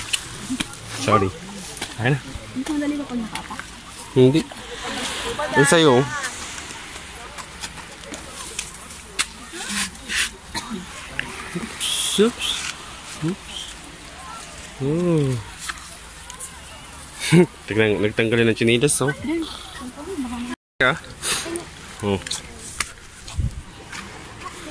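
Young women talk and call out to each other nearby, outdoors.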